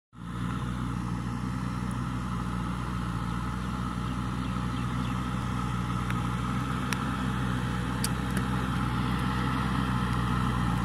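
A backhoe loader's engine grows louder as the machine approaches.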